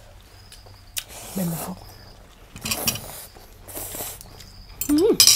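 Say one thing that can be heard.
A woman slurps noodles loudly up close.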